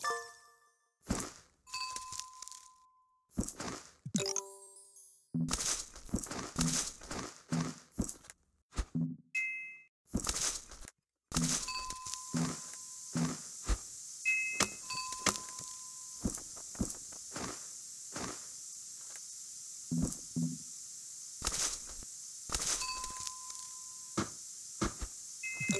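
Soft clicks and pops sound in quick bursts.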